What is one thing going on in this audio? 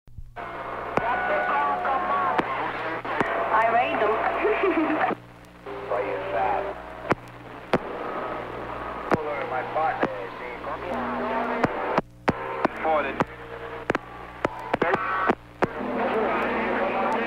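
Electronic music plays loudly through speakers.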